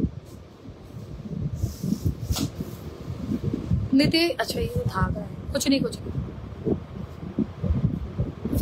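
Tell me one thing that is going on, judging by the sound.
Fingers rustle and rub against embroidered fabric.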